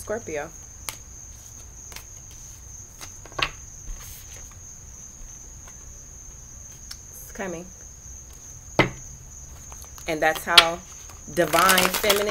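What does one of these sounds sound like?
Cards shuffle and riffle in a woman's hands.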